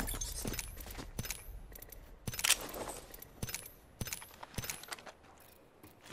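Short menu clicks and beeps sound.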